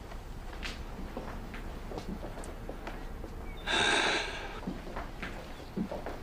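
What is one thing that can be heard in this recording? Footsteps tap on a hard floor as men walk away.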